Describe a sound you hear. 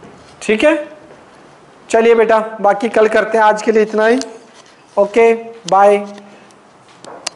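A man speaks clearly and steadily, close by, in a slightly echoing room.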